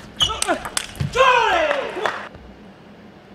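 A man shouts loudly after winning a point.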